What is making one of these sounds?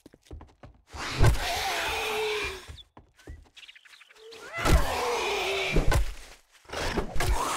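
A zombie growls and snarls loudly.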